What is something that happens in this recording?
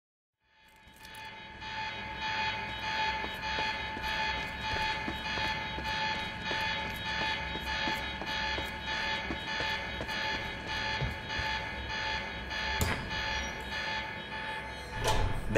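Footsteps run quickly on a hard floor.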